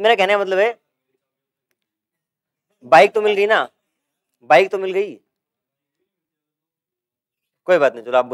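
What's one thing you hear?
A man speaks clearly into a close microphone, in short bursts with pauses.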